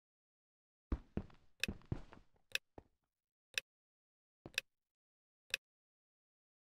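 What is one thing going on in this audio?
Short game beeps tick off a countdown, about one each second.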